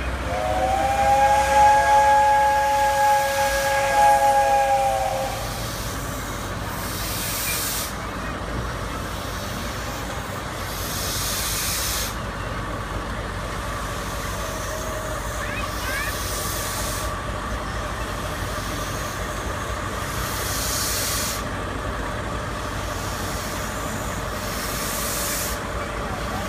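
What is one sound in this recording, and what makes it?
A railway turntable rumbles and hums steadily as it slowly turns.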